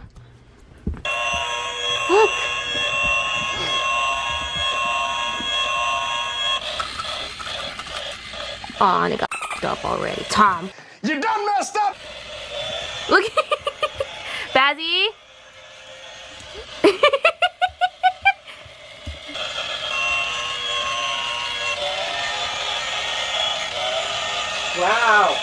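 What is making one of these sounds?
A toy train whirs steadily along its track.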